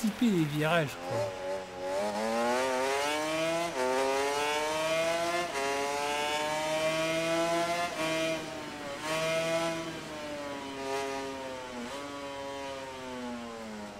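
A motorcycle engine revs high, rising through the gears and dropping as it slows for corners.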